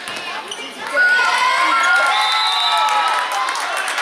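Spectators cheer loudly.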